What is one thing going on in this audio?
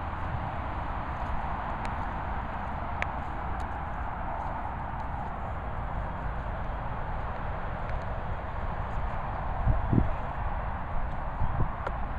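Wind rumbles steadily across the microphone outdoors.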